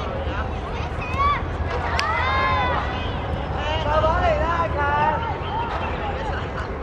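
Children shout to each other outdoors.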